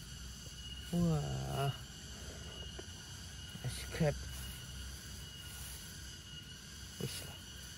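Hands brush and rustle through grass.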